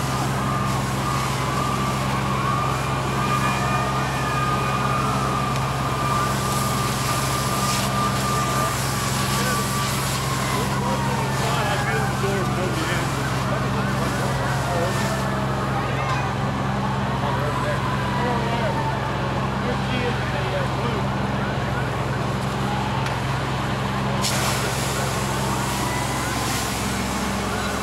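A car fire roars and crackles.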